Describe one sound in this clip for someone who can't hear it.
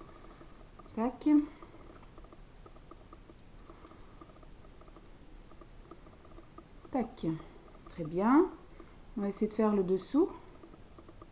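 A woman speaks briefly and calmly, close by.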